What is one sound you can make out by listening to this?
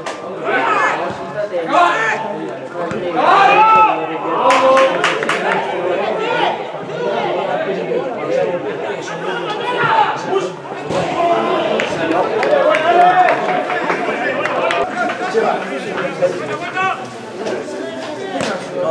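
Players shout and call out across an open outdoor pitch.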